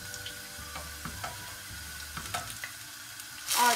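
Vegetable slices tap softly as they are laid into a frying pan.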